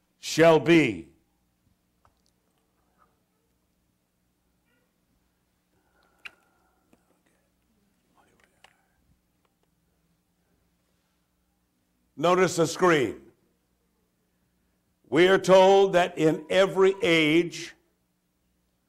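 A middle-aged man speaks calmly into a microphone with long pauses.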